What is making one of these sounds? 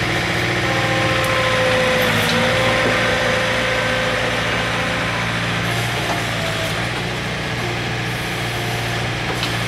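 Hydraulics whine as a digger arm moves.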